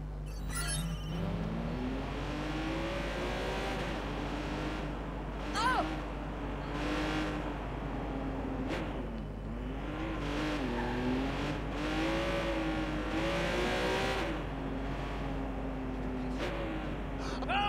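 A sports car engine revs up and down as the car speeds along.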